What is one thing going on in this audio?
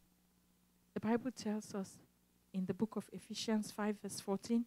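A woman speaks with feeling into a microphone, amplified through loudspeakers in a large room.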